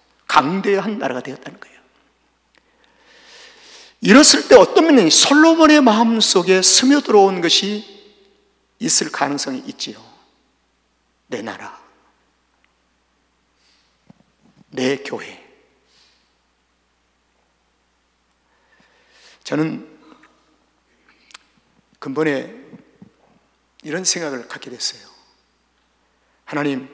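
An elderly man preaches with passion through a microphone, in bursts with long pauses.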